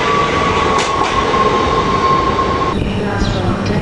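A train's brakes squeal with a steady high whine.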